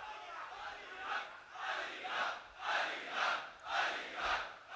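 A large crowd chants loudly in rhythmic unison.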